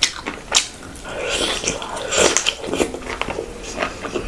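A young woman chews and smacks her lips loudly close to a microphone.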